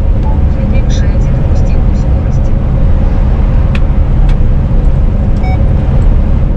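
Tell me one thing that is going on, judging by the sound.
Wind rumbles loudly against a moving vehicle.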